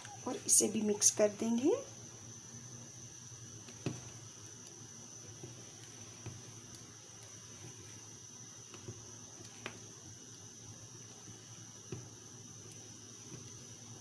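A spatula scrapes and stirs thick batter in a bowl.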